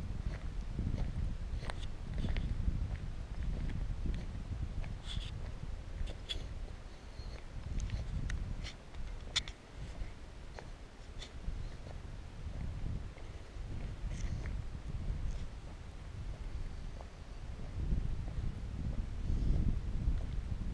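Wind rumbles and buffets outdoors, gusting stronger and weaker.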